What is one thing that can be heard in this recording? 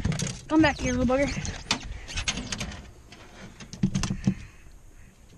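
Objects knock and clatter against a metal boat hull.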